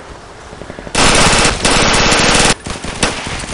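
A submachine gun fires a rapid automatic burst.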